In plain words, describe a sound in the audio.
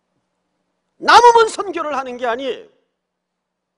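A middle-aged man speaks calmly into a microphone.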